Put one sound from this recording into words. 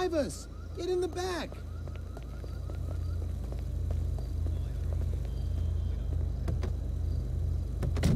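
A large car's engine idles.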